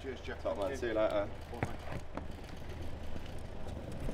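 Wheels of a suitcase roll over paving stones.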